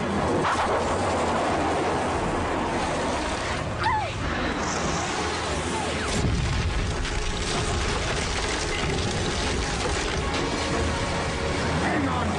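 Water splashes and sprays under wheels.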